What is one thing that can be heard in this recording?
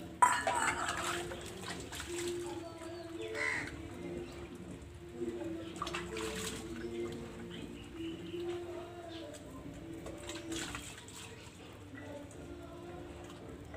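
Water splashes as dishes are rinsed.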